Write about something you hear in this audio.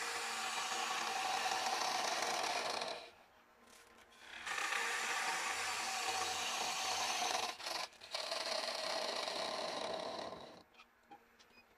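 A wood lathe gouge scrapes and hisses against spinning wood.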